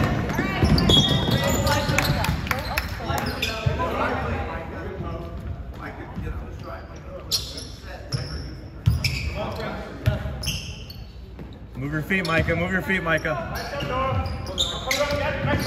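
Young men shout and call out across a large echoing gym.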